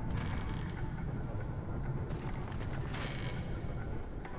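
Weapons strike in a fight.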